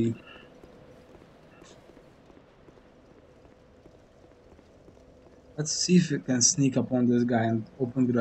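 Armoured footsteps clank softly on stone.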